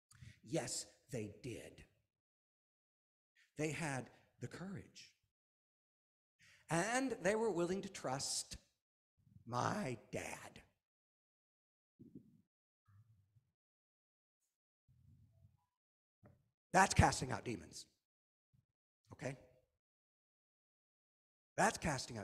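A middle-aged man speaks with animation through a microphone, pausing between phrases.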